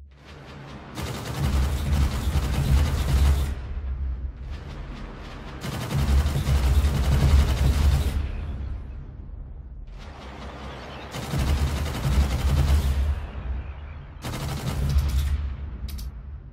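Laser guns fire in long roaring bursts.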